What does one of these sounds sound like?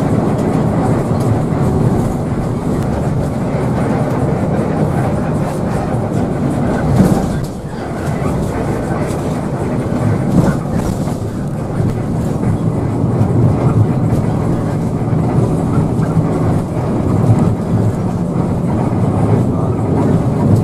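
A bus engine drones steadily while driving on a road.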